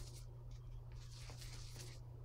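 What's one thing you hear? A brush swishes and dabs in wet paint.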